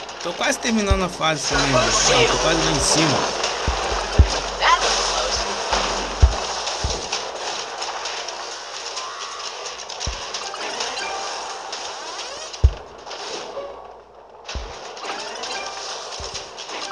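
Game sound effects thud and zap now and then.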